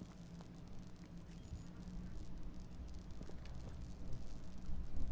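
A low, steady rumble hums.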